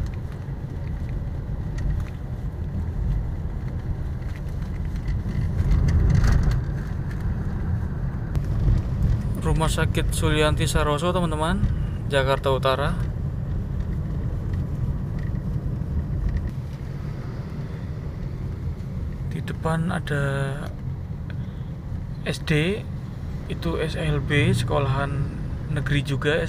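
A car engine hums with a low rumble as the car drives along a road.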